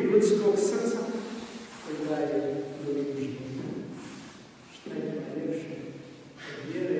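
An elderly man speaks calmly into a microphone, his voice echoing in a large hall.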